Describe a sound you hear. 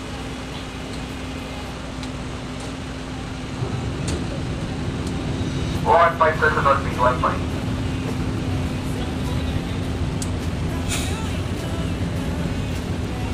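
A ship's engine hums steadily and low.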